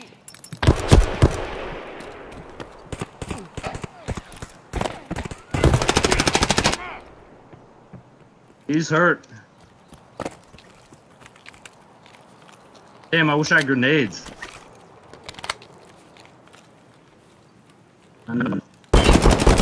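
Gunfire rings out in rapid bursts.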